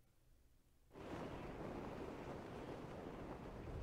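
Wind rushes steadily past a gliding parachute.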